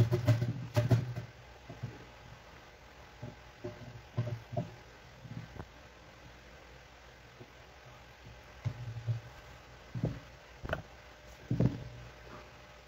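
A metal grater scrapes and taps against a plate.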